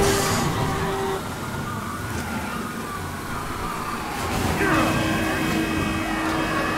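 A car engine hums steadily as a car drives along a street.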